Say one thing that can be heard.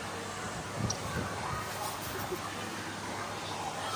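A young woman giggles behind her hand.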